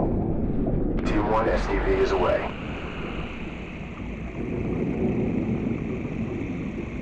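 Bubbles gurgle and burble underwater.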